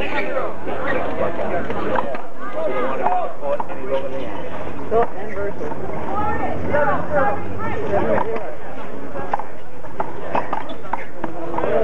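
A rubber ball slaps sharply against a wall.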